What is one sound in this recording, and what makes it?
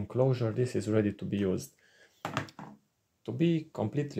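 A small plastic case is set down on a wooden table.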